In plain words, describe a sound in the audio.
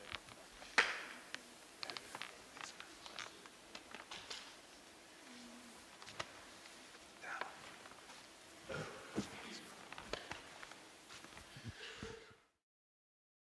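A group of adults chatter and murmur in a large echoing hall.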